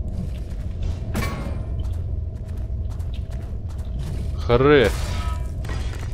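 Metal blades clang against each other with sharp ringing strikes.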